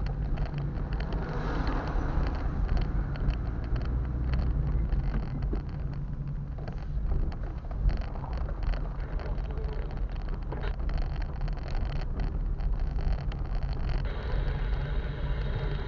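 Tyres crunch and rattle over a rough dirt road.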